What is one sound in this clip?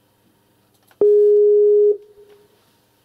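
A computer plays a short, steady call tone through its speaker.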